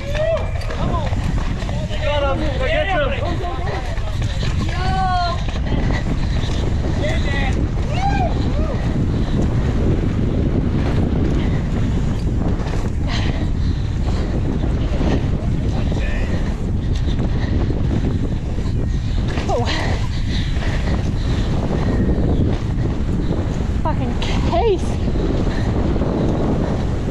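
Wind rushes loudly past the rider throughout.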